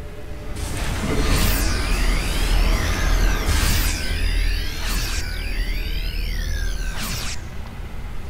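Electronic laser beams warble and whine.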